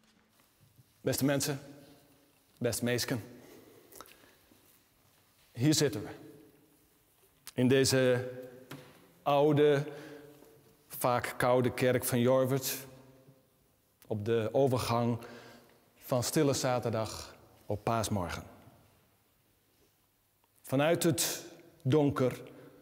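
A middle-aged man speaks calmly and clearly to a group in a room with a slight echo.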